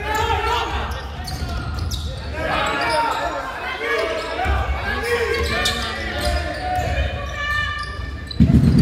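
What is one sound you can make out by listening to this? Men shout and call out across an echoing hall.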